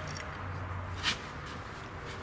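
A metal wrench knocks against a wooden wedge.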